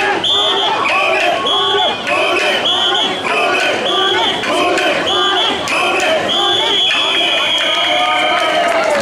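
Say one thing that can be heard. A large crowd of men chants loudly in rhythmic unison, close by outdoors.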